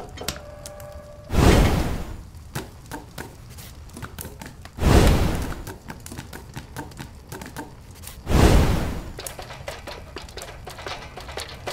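Lava bubbles and roars in deep, heavy bursts.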